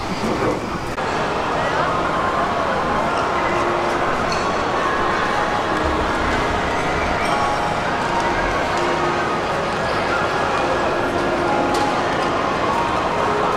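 Many people chatter in a large, echoing hall.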